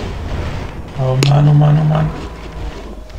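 A video game plays a short low humming tone.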